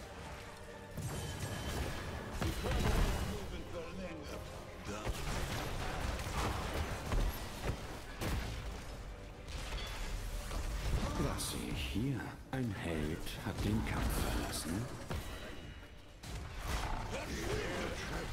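Blasts, zaps and clashes of a fantasy battle ring out.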